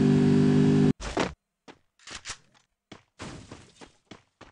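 Footsteps patter on grass.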